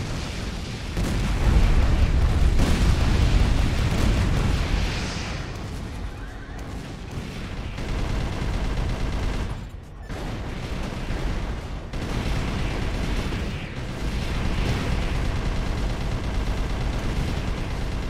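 A robot's thrusters roar steadily.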